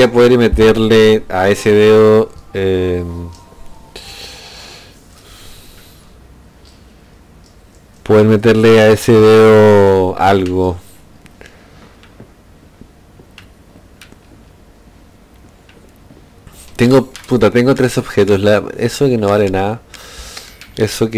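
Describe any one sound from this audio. A young man talks animatedly into a headset microphone, close by.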